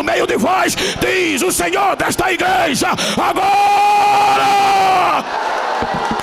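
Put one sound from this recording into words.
A middle-aged man shouts fervently through a microphone over loudspeakers in a large echoing hall.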